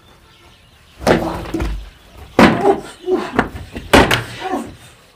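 Plastic bottles thump against a body.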